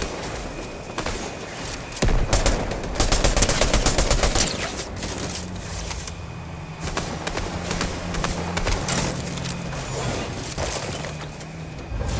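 Footsteps patter on the ground while running.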